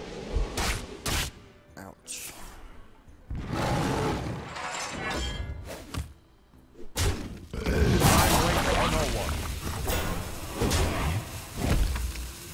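Magical whooshes and crashes ring out as game pieces strike each other.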